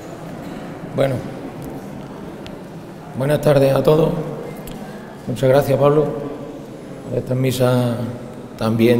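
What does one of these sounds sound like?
A man speaks into a microphone, heard over loudspeakers in an echoing hall.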